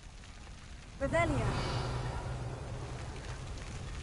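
A magical spell bursts with a shimmering, swooping chime and then fades.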